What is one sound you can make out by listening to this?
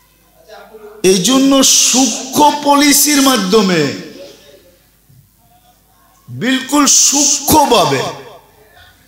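An elderly man preaches loudly and with animation into a microphone, in bursts with pauses.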